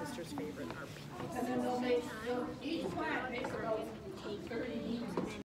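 Young girls talk and chatter excitedly close by.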